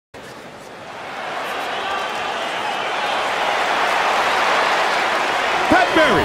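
A large crowd cheers and roars in a big echoing arena, growing louder.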